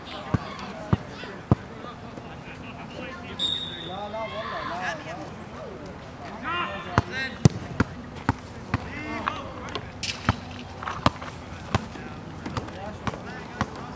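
A soccer ball is kicked with sharp thuds.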